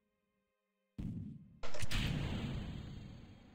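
A rocket stage breaks away with a loud bang.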